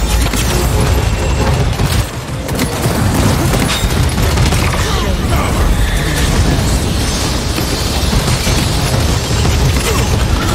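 Energy weapons fire rapidly with zapping blasts.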